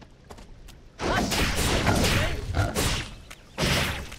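Blades clash in a fight.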